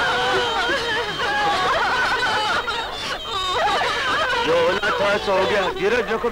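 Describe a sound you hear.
A woman wails loudly in grief.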